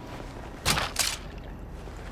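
A gun fires two loud shots.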